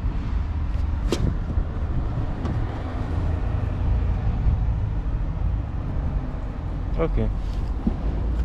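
A car boot floor panel clicks and knocks as it is lifted and lowered.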